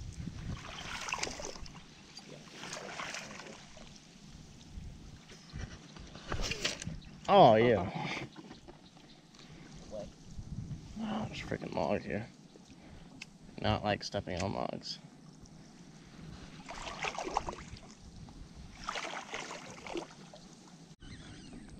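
Legs wade through weedy water.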